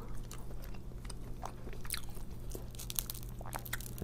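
Bread crackles as it is pulled apart.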